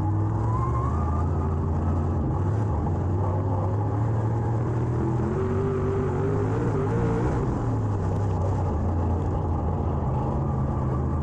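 A race car engine roars loudly from inside the cockpit, its pitch rising and falling.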